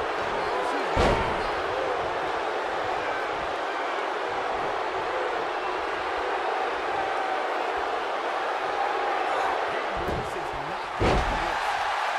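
A body slams hard onto a wrestling ring mat with a heavy thud.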